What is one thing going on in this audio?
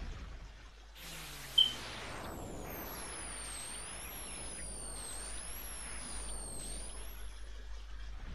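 A game's crackling electric sound effect plays with a zigzagging whine.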